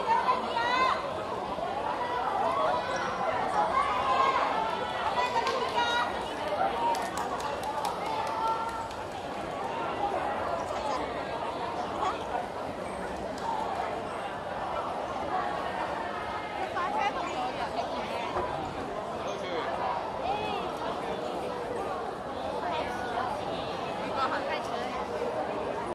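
A crowd of young women chatters and calls out excitedly in a large echoing hall.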